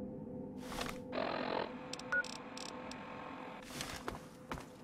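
Device buttons click and beep.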